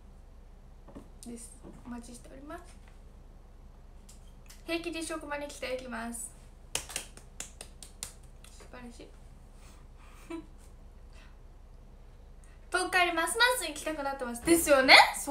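A young woman speaks softly and close up, in short bursts with pauses.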